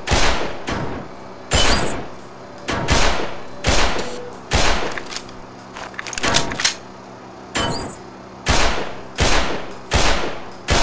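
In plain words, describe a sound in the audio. A pistol fires single shots in a steady series, each echoing off the walls.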